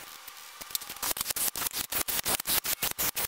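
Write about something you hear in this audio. A ratchet wrench clicks rapidly on a bolt.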